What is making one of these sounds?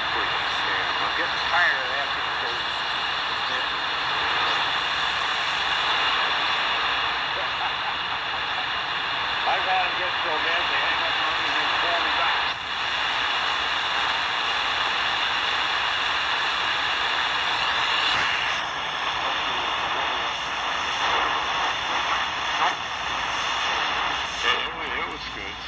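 A portable radio hisses with shortwave static and faint warbling signals.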